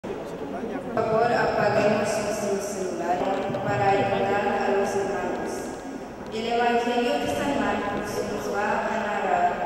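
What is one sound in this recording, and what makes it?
A young woman sings slowly through a microphone in a large echoing hall.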